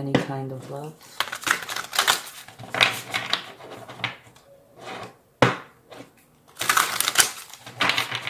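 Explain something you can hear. Cards riffle and flick as they are shuffled by hand.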